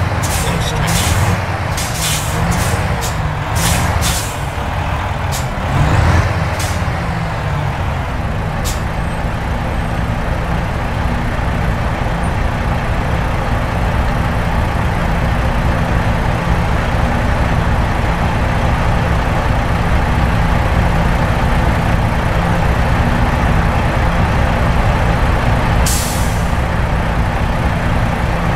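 A truck engine rumbles low and steady, slowing and then idling.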